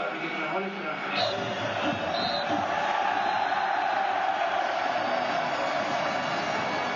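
A stadium crowd murmurs and cheers in the background.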